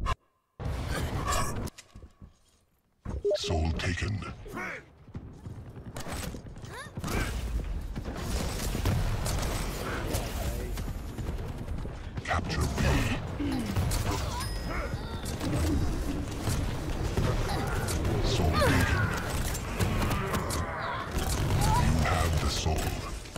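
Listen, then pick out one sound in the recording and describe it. A young man talks with animation through a microphone.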